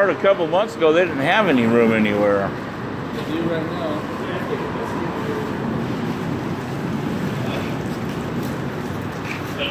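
Traffic rumbles past steadily on a nearby road.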